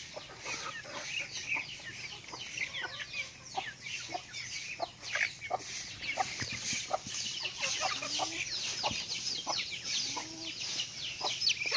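Ducks peck and dabble noisily at food on the ground.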